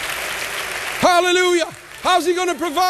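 A man speaks loudly and expressively through a microphone in a large hall.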